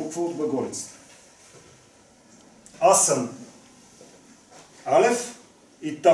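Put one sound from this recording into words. A middle-aged man speaks in short bursts, explaining calmly, close by.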